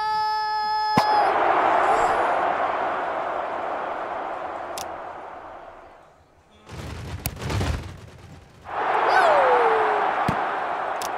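A crowd cheers loudly, then fades.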